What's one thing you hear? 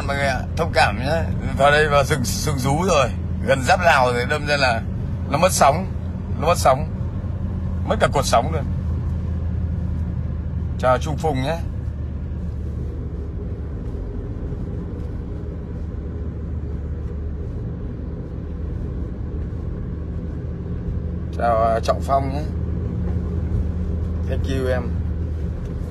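A middle-aged man talks with animation close to a phone microphone.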